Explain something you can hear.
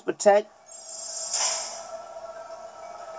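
A video game plays a shimmering shield sound effect.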